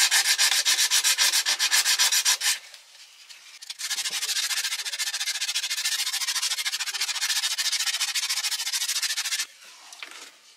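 Sandpaper rubs back and forth over a surface in quick strokes.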